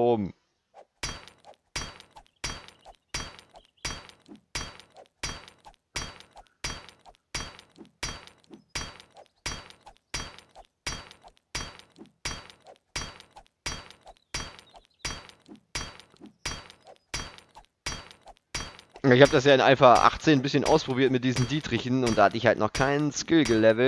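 A stone axe strikes rock again and again at a steady pace.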